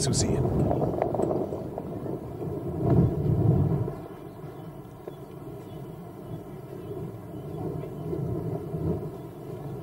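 Wind gusts across an open mountainside.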